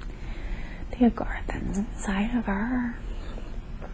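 A young woman murmurs sleepily close by.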